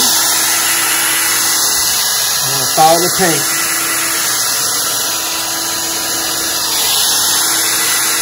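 A hair dryer blows air with a steady whooshing hum.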